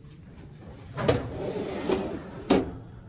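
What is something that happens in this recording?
A metal drawer slides open with a rattle.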